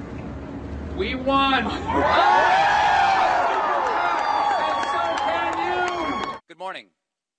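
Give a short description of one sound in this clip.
A man shouts loudly and excitedly into a microphone.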